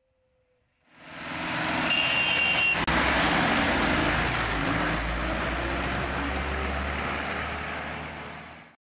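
A tractor engine rumbles loudly close by and drives off.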